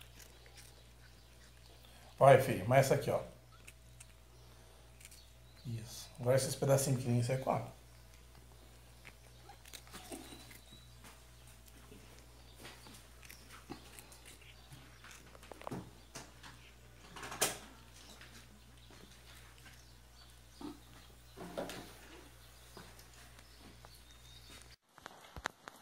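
A cat crunches dry food close by.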